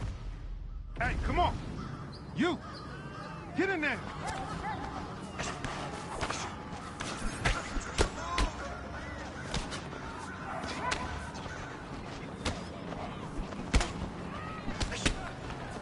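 A crowd cheers and shouts around a fight.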